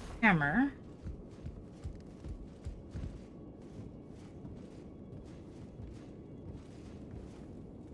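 Footsteps thud on wooden boards and stairs.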